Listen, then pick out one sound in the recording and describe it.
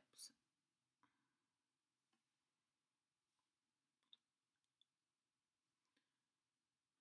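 A plastic lip gloss tube clicks and taps.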